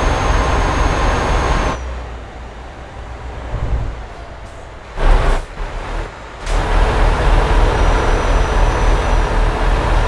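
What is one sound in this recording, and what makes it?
A truck engine rumbles steadily and low while driving.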